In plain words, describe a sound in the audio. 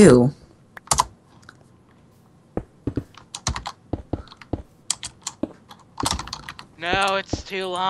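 Blocks thud softly as they are placed one after another.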